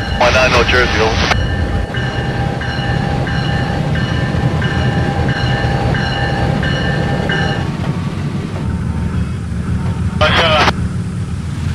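A train horn blares loudly in short blasts.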